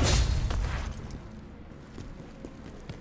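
Footsteps crunch quickly through snow.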